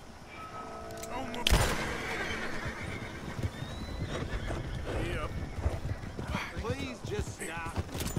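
Wagon wheels rattle along a dirt road.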